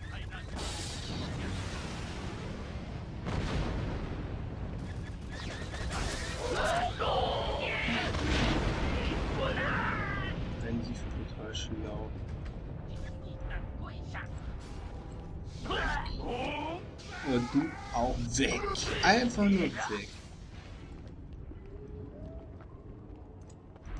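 A lightsaber hums and swishes.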